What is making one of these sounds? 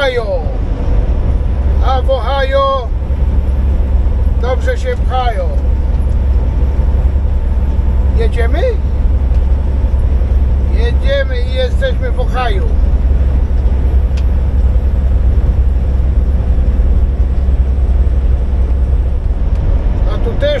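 A truck engine hums with a steady low rumble while tyres roll on a highway.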